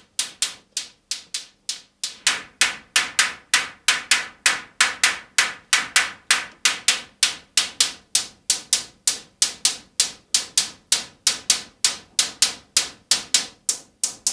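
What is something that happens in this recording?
A modular synthesizer plays a fast, steady rhythm of sharp electronic plucks.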